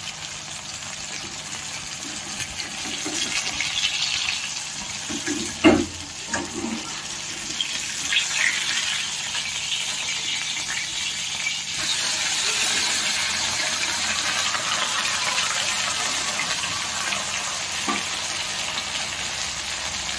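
Oil sizzles steadily in a hot pan.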